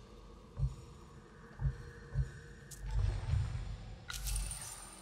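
Soft menu tones click and chime.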